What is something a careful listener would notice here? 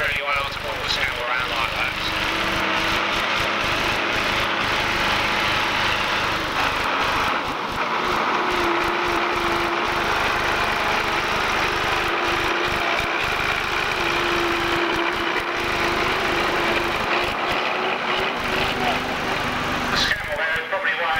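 A tractor engine drones and strains steadily close by.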